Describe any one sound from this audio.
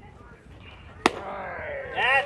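A softball smacks into a catcher's mitt with a sharp pop.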